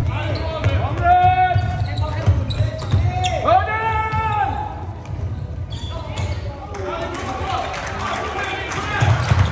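Plastic sticks clack against a ball and against each other in an echoing hall.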